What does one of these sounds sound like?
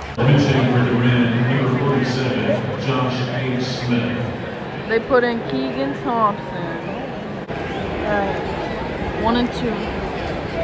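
Spectators cheer and shout around the field.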